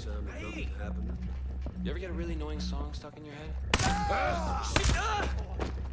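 A rifle fires several shots.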